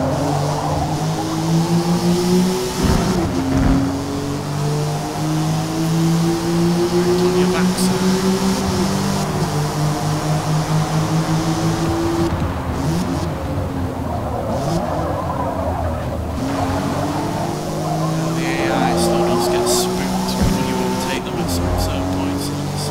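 A car engine roars loudly, rising and falling in pitch as it shifts gears.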